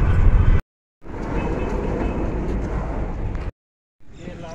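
A bus rolls past close by.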